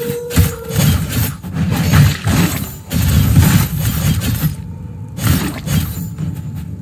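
Sword slashes and heavy impacts strike enemies in quick bursts.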